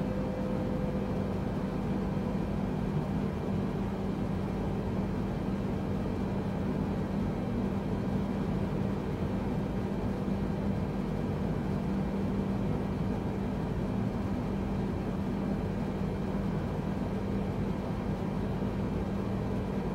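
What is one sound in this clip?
A jet engine hums steadily inside a cockpit in flight.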